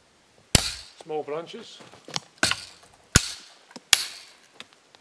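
A tool strikes with sharp, loud cracks that ring out briefly.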